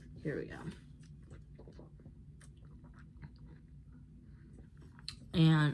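A young woman sips loudly through a straw.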